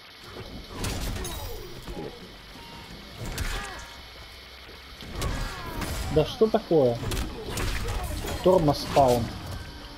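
A magic blast whooshes and crackles.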